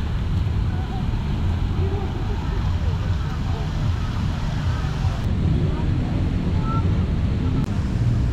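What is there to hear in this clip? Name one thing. A fountain splashes steadily in the distance.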